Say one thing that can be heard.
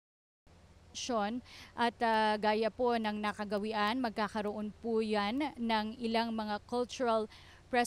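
A middle-aged woman talks with animation nearby.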